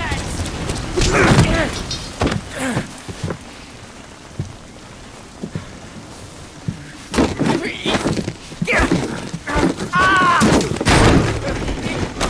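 A plastic chair clatters and scrapes across a hard floor.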